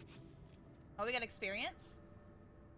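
A young woman speaks briefly and with animation, close to a microphone.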